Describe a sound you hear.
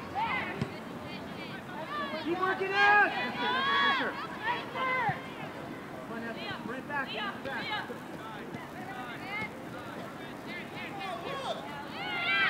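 Young women call out and shout to each other across an open field.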